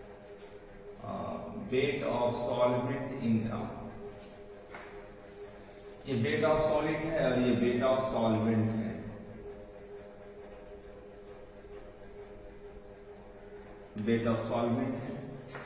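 A man speaks in bursts, explaining clearly and close by.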